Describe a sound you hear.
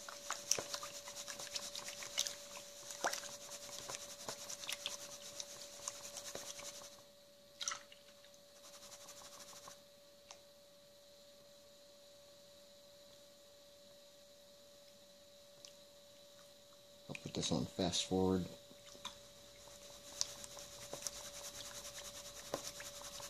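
Water swishes and sloshes in a plastic pan.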